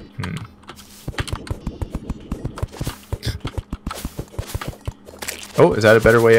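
A video game character digs through blocks with rapid tapping clicks.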